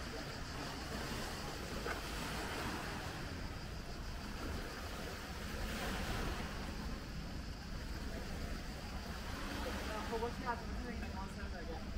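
Swimmers splash softly in the water nearby.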